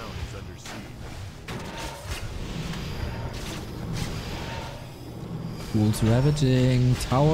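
Weapons clash and spells burst in a fantasy battle.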